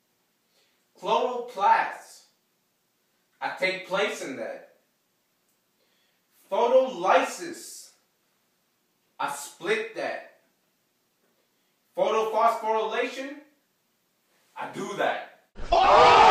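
A young man speaks in short bursts, calmly and close by, with pauses between phrases.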